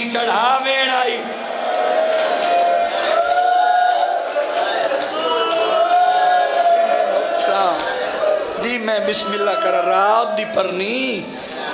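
A man sings a mournful chant loudly into a microphone, with reverberation.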